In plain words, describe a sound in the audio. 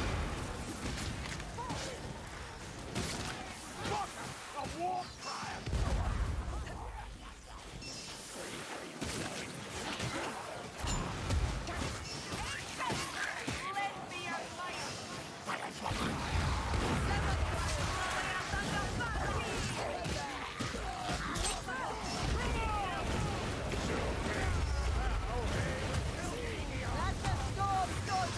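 Melee weapons clash and thud against enemies.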